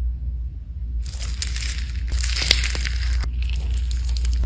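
Soft foam slime crackles as fingers press into it.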